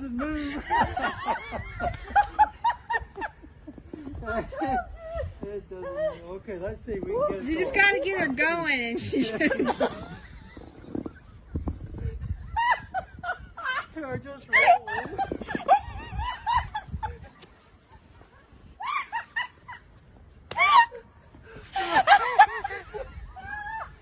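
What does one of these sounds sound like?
An elderly woman laughs nearby.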